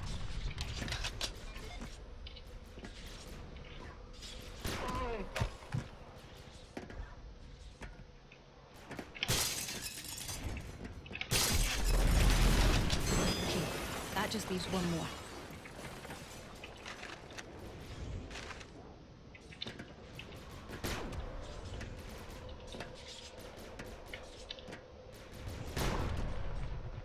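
Game weapons fire in quick sharp blasts.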